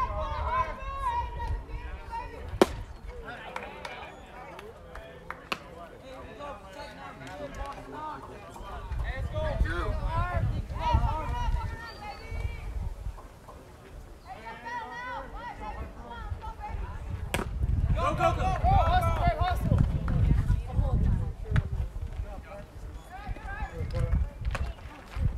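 Players and spectators call out and cheer across an open field.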